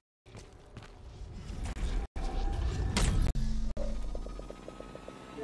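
A teleporter hums and whooshes loudly.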